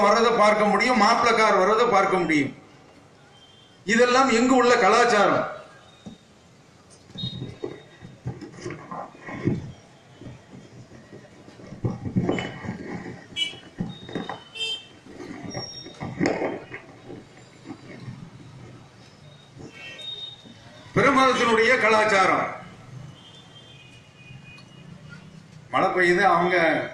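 A man speaks loudly and with animation through a loudspeaker, echoing outdoors.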